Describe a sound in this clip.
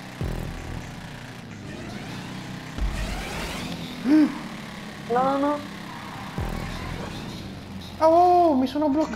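A motorbike engine revs and whines steadily.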